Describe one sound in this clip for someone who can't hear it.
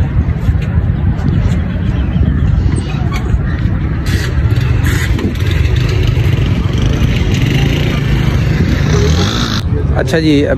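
Several motorcycle engines idle and rumble steadily outdoors.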